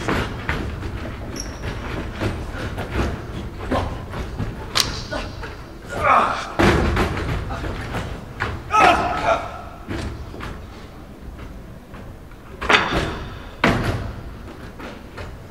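Men shout and grunt as they fight in an echoing hall.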